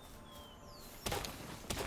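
An axe strikes a tree trunk with a thud.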